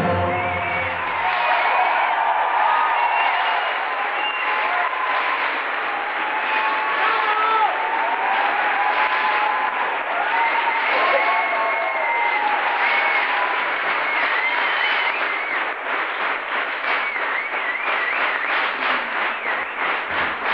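A crowd of men and women cheers loudly in a large hall.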